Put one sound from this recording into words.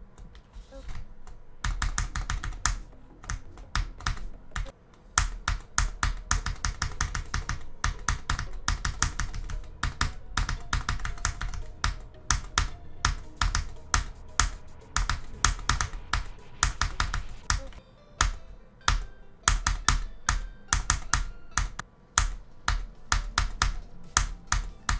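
Fast electronic dance music plays with a heavy thumping beat.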